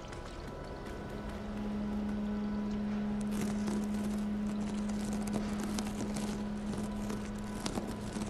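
A cat purrs steadily.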